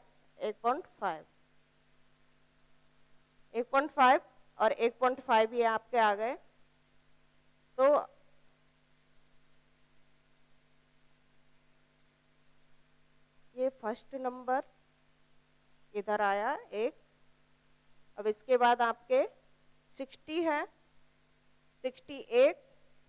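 A woman speaks calmly through a clip-on microphone, in short phrases with pauses.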